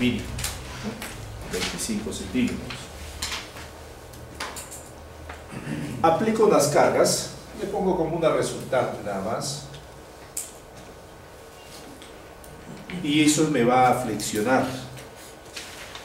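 A man speaks calmly, close by, as if lecturing.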